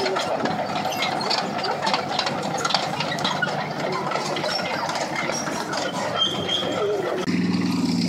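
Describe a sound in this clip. An armoured truck engine rumbles loudly close by.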